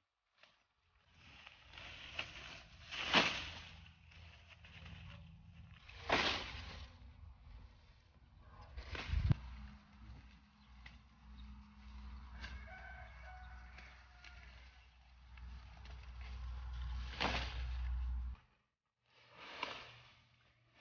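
Leafy corn stalks rustle and crunch as a man pulls and drags them.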